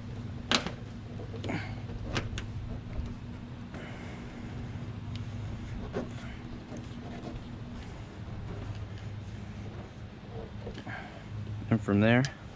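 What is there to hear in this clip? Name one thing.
A rubber door seal creaks and clicks as hands pull and press it into place.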